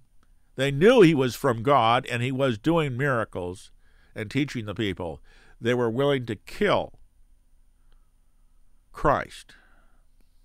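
An elderly man speaks calmly and with expression, close to a microphone.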